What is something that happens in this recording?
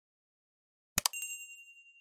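A mouse click sounds.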